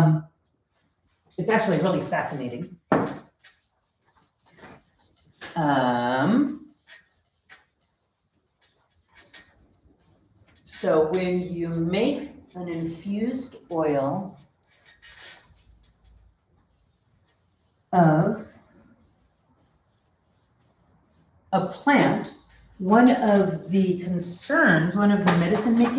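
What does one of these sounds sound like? A woman speaks calmly and clearly, close by, in pauses.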